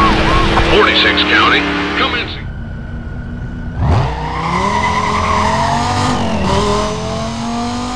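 A racing car engine roars and climbs in pitch as the car speeds up.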